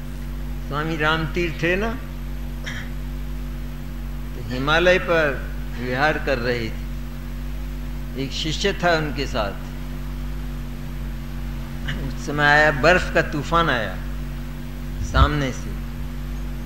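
An elderly man speaks slowly into a microphone, in short phrases with pauses.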